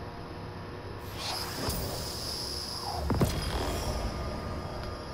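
A short game chime and whoosh sound out as a notification pops up.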